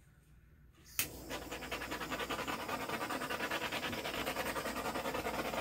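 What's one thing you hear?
A heat gun blows with a steady, loud whooshing roar.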